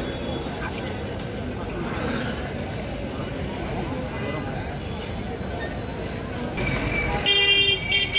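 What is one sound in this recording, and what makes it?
Crowd voices chatter in an outdoor market.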